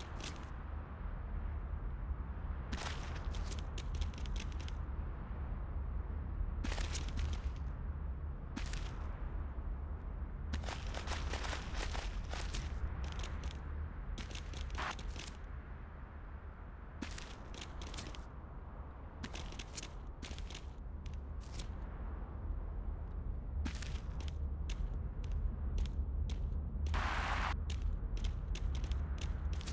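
A goat's hooves patter quickly over hard ground.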